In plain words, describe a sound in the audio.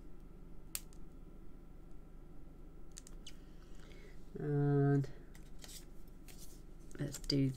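Paper pieces tap and slide on a card surface.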